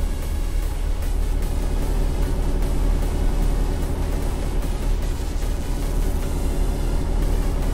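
A truck engine drones steadily at low speed.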